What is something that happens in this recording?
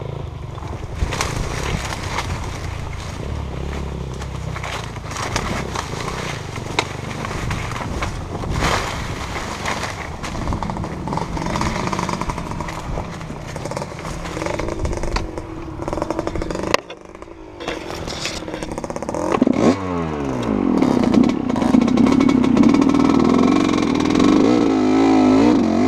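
A dirt bike engine putters and revs close by.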